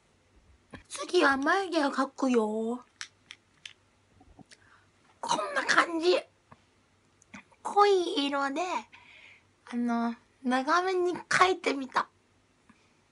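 A young woman speaks close by with animation, in short bursts.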